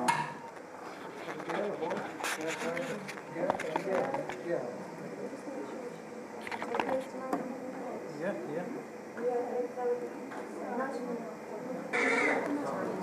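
Adults talk quietly nearby.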